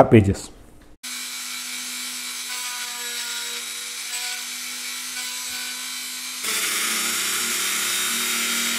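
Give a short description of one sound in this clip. A small rotary tool whirs steadily, growing louder.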